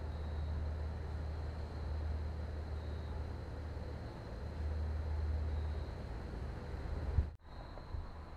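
A van's engine idles with a low, steady rumble.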